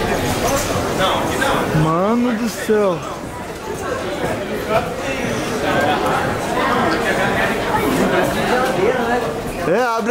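Suitcase wheels roll over a hard floor.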